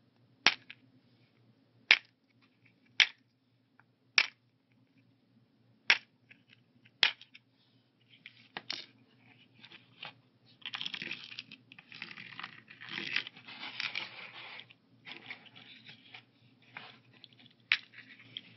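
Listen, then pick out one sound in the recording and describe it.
Plastic pill box lids snap shut with sharp clicks.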